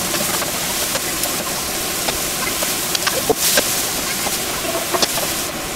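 A wooden spatula scrapes and taps against a pan.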